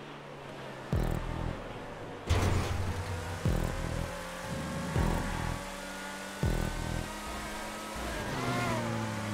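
A sports car engine roars at high revs.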